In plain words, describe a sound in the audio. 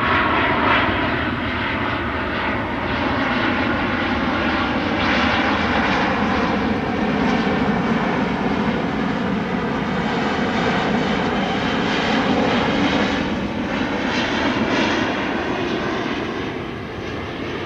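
A jet airliner roars loudly overhead as it passes low.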